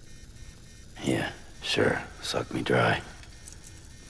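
A man speaks in a low, dry voice, close by.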